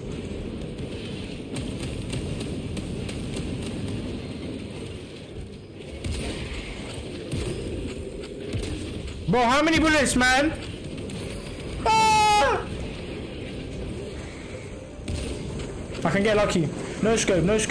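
Guns fire and thud in a steady battle din.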